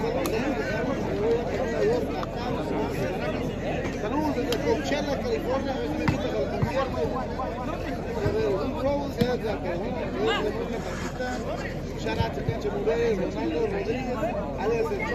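A large outdoor crowd of spectators chatters and calls out.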